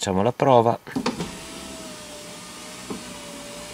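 An electric car window motor whirs as the glass rises.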